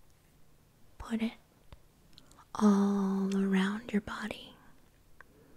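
A woman speaks softly close to a microphone.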